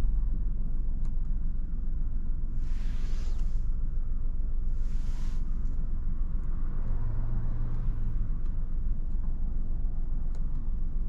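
A car engine hums low and steady inside the cabin.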